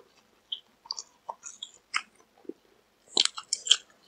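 A young man slurps noodles up close.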